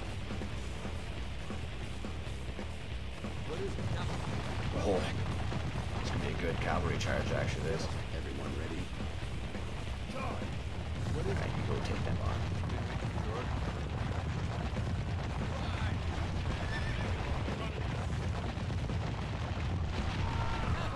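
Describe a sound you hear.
Soldiers shout in a battle.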